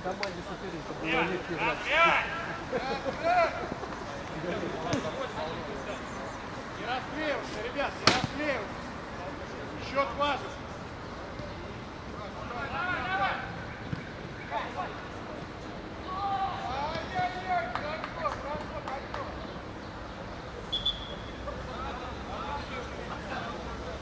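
Young men shout to each other outdoors across a field.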